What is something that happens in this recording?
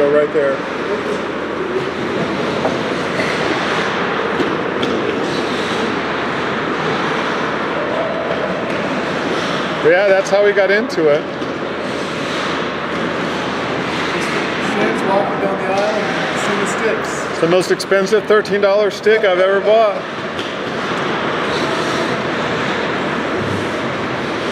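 Skates scrape and hiss across the ice in a large echoing hall.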